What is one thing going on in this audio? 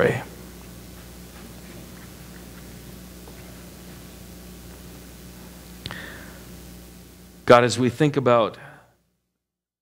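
A middle-aged man speaks briefly through a microphone in a large echoing room.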